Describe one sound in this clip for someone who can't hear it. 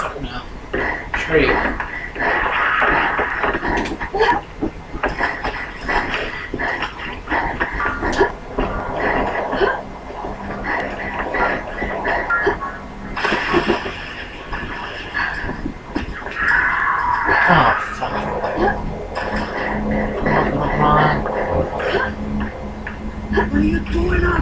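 Sharp bangs of gunfire come from a video game, heard through a television speaker.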